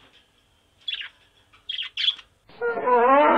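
A parrot squawks shrilly a few times.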